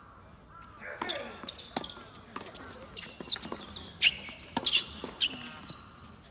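A tennis ball is struck back and forth with rackets in a rally.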